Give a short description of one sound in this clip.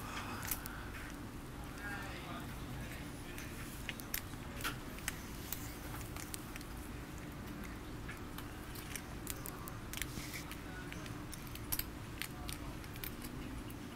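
Poker chips click and clatter as a man shuffles them in his hand.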